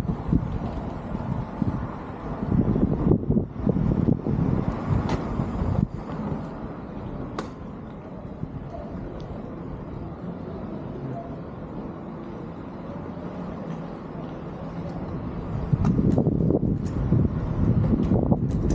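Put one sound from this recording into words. Bicycle tyres roll over a paved road.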